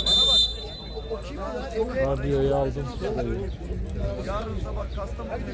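Men shout and call out across an open field.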